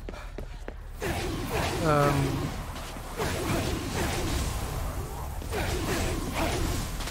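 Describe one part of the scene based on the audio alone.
Magic blasts crackle and whoosh in quick bursts.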